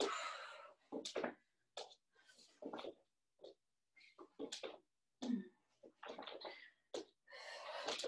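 Feet and hands thump softly on a floor.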